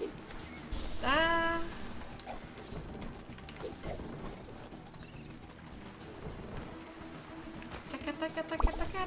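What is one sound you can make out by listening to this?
A video game plays short chiming sound effects.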